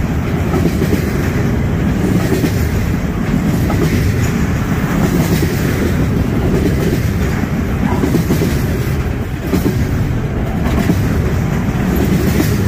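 A freight train rumbles past close by, its wheels clacking on the rails.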